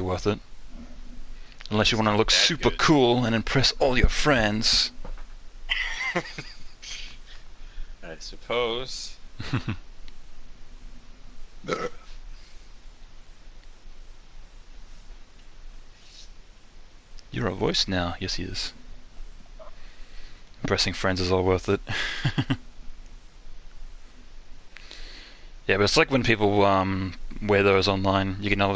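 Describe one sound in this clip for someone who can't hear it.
A young man talks animatedly into a close microphone, in bursts with pauses.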